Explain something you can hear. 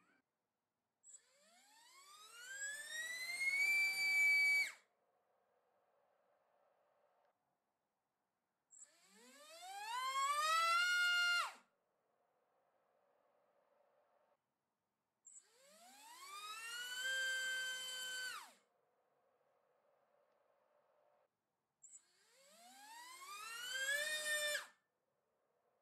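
A small electric motor spins a propeller up to a loud, rising high whine, then cuts off abruptly, several times.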